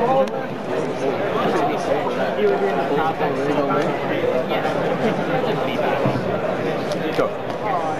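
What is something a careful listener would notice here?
Playing cards are shuffled by hand.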